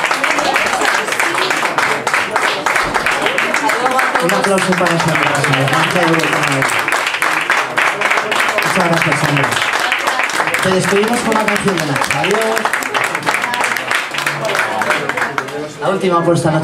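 An audience claps along in rhythm.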